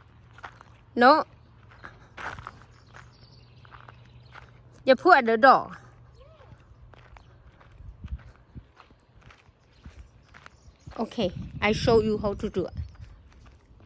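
A young girl calls out excitedly nearby.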